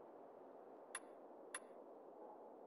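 A game menu clicks softly as a selection changes.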